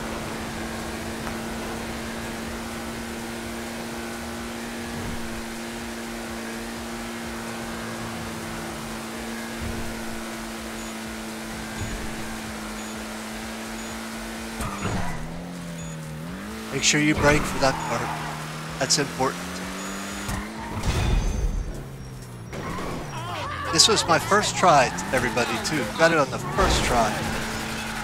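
A car engine hums steadily and shifts in pitch as the car drives.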